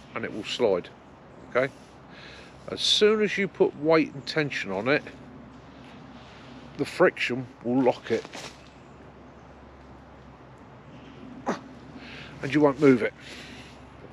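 A middle-aged man talks calmly close by, in pauses.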